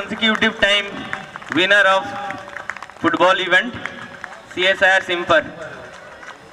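A man speaks loudly through a loudspeaker, with echo outdoors.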